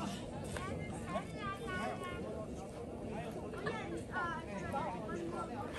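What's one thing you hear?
Several men and women chatter and call out loudly outdoors.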